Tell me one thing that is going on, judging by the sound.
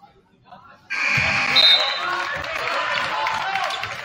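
A crowd in a large echoing gym cheers and shouts.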